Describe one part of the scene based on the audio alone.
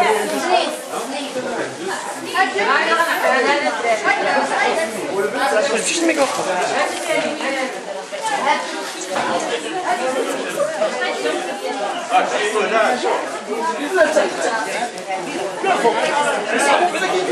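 Several women talk over each other nearby.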